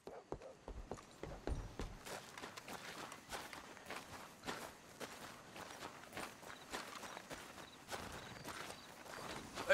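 Footsteps crunch on a gravel road.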